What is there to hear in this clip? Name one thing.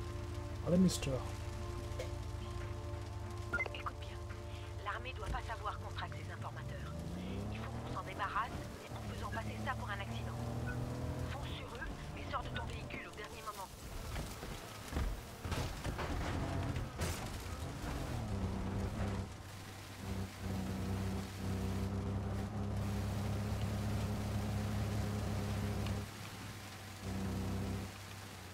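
A car engine idles and then revs up as the car speeds away.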